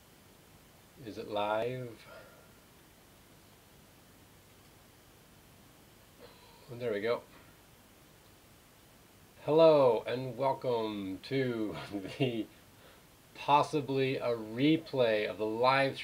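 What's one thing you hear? A middle-aged man talks calmly into a close microphone, in short bursts with pauses.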